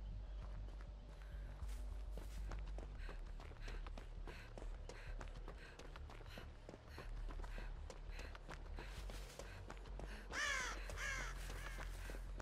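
Footsteps run quickly over leaves and undergrowth.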